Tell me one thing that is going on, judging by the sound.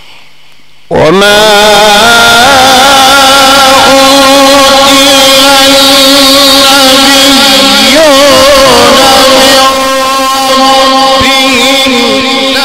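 A middle-aged man chants loudly and melodiously through an amplified microphone.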